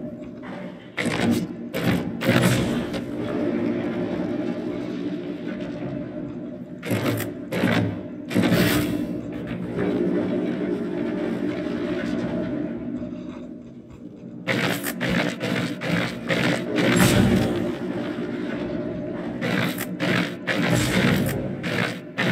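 Heavy mechanical parts clunk and grind as a mechanism turns.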